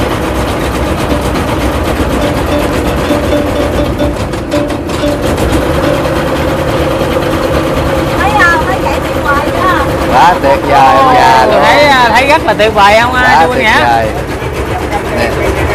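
A boat engine hums steadily throughout.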